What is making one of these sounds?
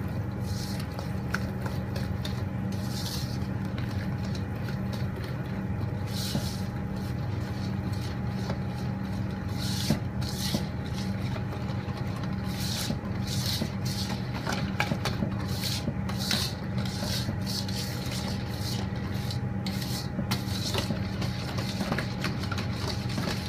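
A wire whisk scrapes and rattles rapidly against a metal bowl.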